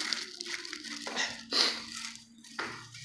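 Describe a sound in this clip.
A plastic bag rustles and crinkles up close.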